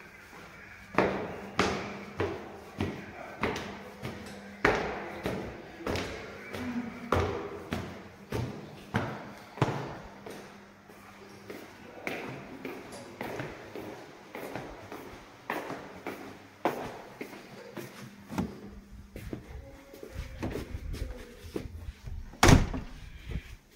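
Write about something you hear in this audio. Footsteps walk at a steady pace.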